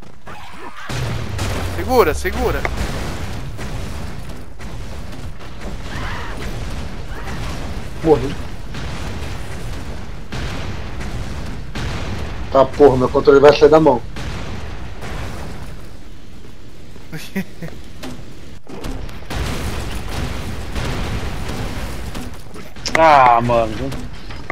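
Explosions boom repeatedly in a video game.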